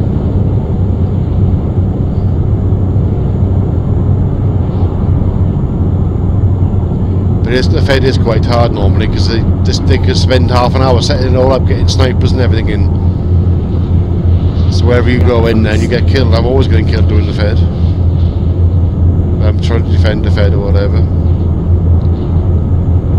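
A truck engine hums steadily as it drives at speed.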